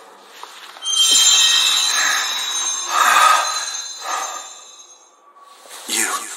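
A bright magical shimmer rings out.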